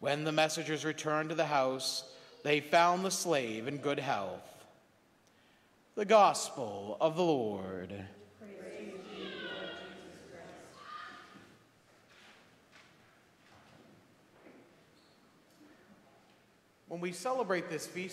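A man speaks and chants at a lectern, heard in an echoing room.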